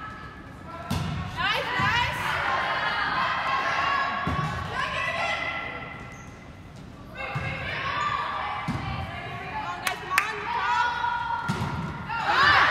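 A volleyball is struck with sharp thumps in an echoing gym.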